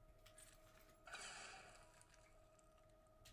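Blaster shots fire and hit with bursts of noise.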